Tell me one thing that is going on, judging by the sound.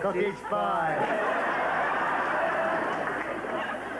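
Men laugh heartily.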